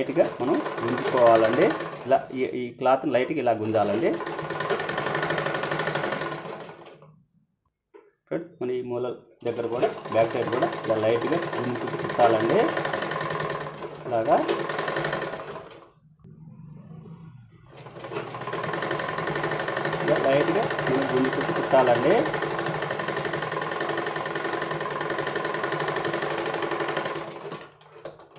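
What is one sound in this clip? A sewing machine whirs and clatters steadily as its needle stitches.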